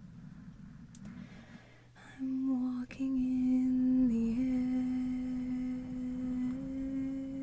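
Fingers rub and scratch over a microphone's foam cover.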